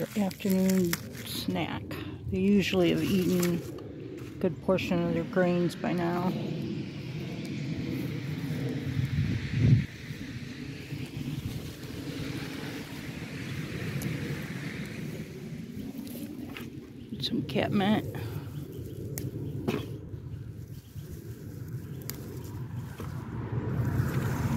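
Leafy stalks rustle and snap as they are picked by hand.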